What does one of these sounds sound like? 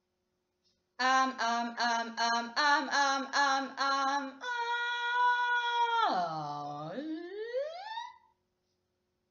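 A young woman sings vocal exercises close by, in short pulsing notes and then a long note that dips low and slides back up.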